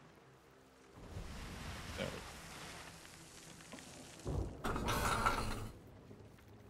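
Waves wash and splash against a ship's hull.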